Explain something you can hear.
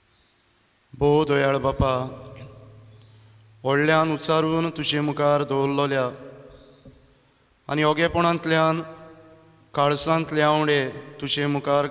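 A man chants a prayer in a singing voice, echoing in a large hall.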